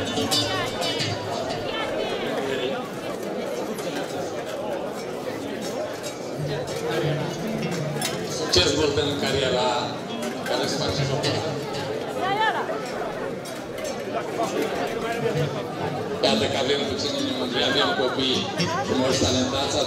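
Bells on costumed dancers jingle and clang.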